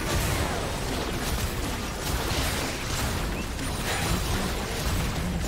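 Game battle effects clash and burst in a dense, steady stream.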